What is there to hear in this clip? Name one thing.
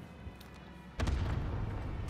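A rifle fires a single loud shot that echoes.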